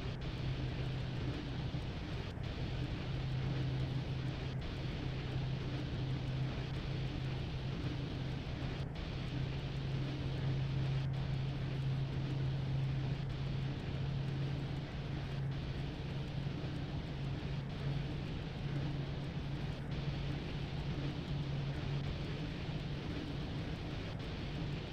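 A train's electric engine hums steadily.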